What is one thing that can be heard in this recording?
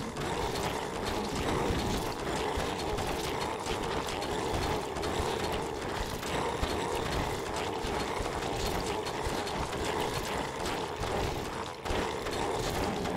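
Weapons strike a large monster again and again.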